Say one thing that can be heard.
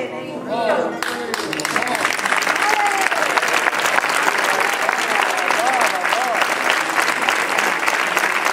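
A man claps his hands in rhythm.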